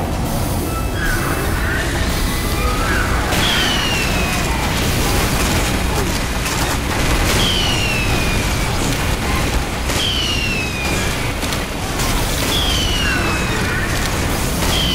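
A minigun fires in rapid, rattling bursts.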